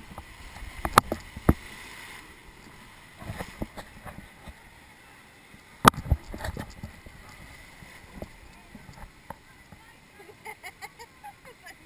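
Water rushes and churns around a raft.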